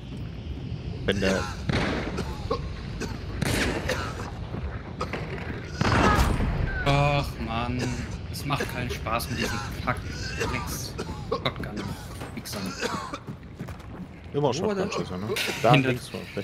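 A man talks casually into a microphone close by.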